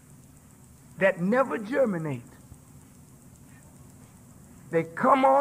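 A man speaks forcefully into a microphone, in bursts with pauses.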